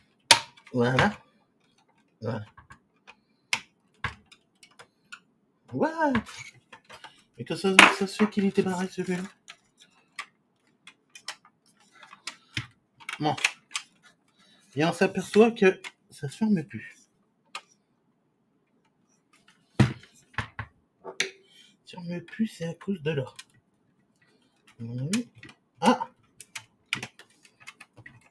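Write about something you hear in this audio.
Plastic parts click and knock as a device is handled.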